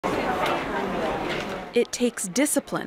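A crowd murmurs on a busy street.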